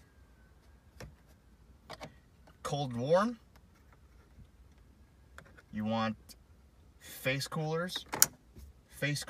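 A plastic dial clicks as it is turned.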